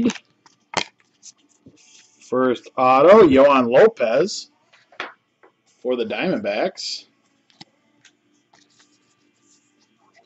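Trading cards slide and rustle against each other in close hands.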